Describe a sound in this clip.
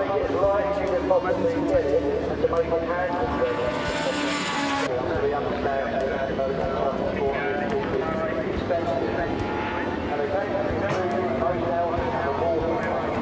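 A motorcycle engine roars loudly as the bike races past, its pitch rising and falling.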